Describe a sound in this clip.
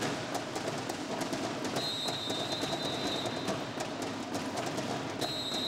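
A drumline beats snare drums in a fast, steady rhythm in a large echoing hall.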